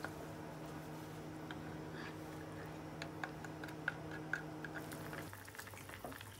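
A ladle stirs and scrapes in a pot.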